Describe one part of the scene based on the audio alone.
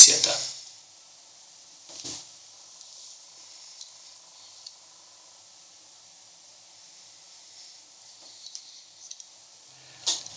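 Metal parts of a revolver click as hands turn it.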